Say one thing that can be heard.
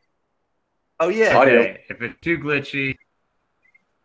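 A second man speaks with animation over an online call.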